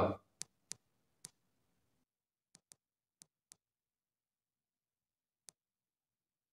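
Keys click sharply a few times, then go quiet.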